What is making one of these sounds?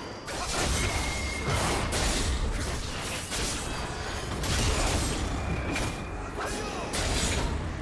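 Video game spell effects and weapon hits crash and whoosh in a fast fight.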